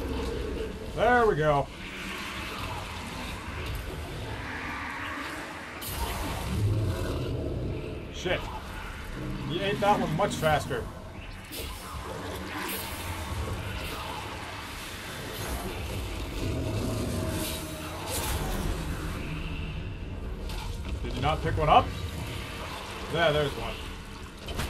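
Creatures growl and shriek.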